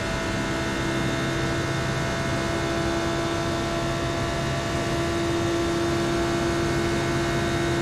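A race car engine roars steadily at high speed.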